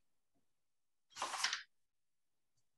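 Paper rustles briefly as a sheet is moved.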